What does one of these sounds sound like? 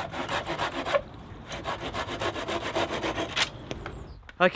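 A knife scrapes rapidly against wood.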